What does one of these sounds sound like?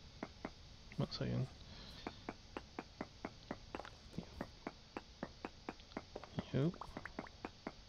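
A stone block breaks and crumbles.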